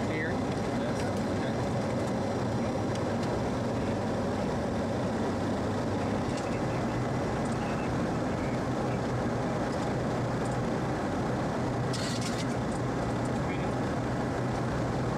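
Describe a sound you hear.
An aircraft engine drones steadily from inside the cabin.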